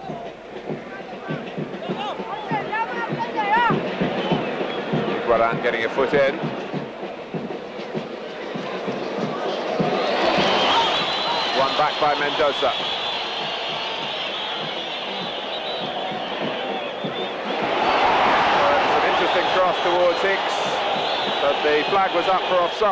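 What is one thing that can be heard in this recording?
A large stadium crowd cheers and roars, swelling louder at times.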